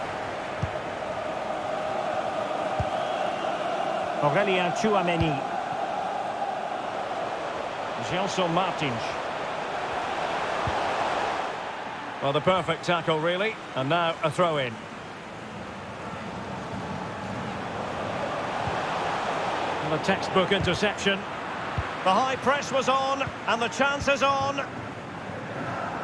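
A stadium crowd roars steadily in the background.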